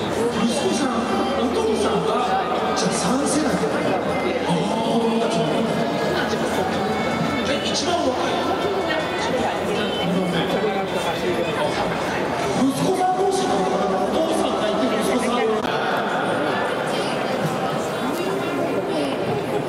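A young man speaks calmly into a microphone, heard over loudspeakers echoing in a large stadium.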